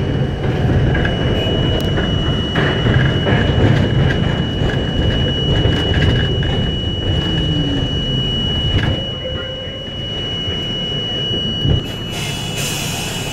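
A train rumbles along elevated tracks.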